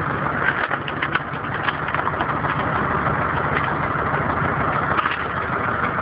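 Wood creaks and cracks as a log splits on a spinning cone.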